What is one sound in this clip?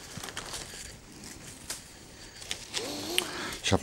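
Shiny gift ribbon crinkles as it is handled.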